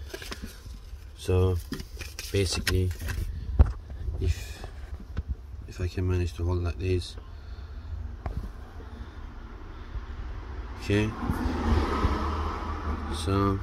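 A paper sheet rustles in a hand.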